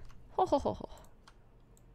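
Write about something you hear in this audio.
A young woman speaks briefly into a microphone.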